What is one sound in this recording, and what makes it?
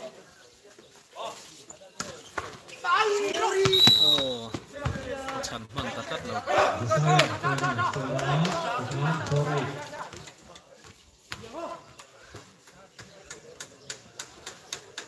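A volleyball is struck with sharp slaps.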